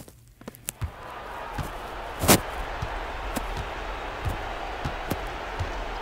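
Sneakers squeak on a basketball court.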